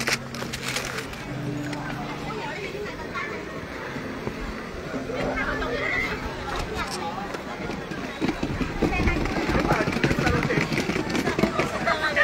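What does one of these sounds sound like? A wheelchair rolls over wooden deck boards.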